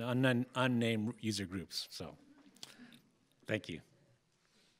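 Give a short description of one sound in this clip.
An older man speaks calmly through a microphone.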